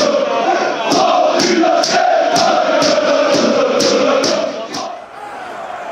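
A crowd of fans claps in a steady rhythm.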